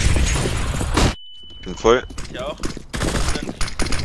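A stun grenade goes off with a sharp bang.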